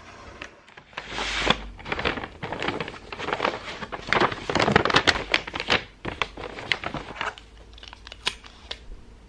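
Wrapping paper crinkles and rustles as it is folded.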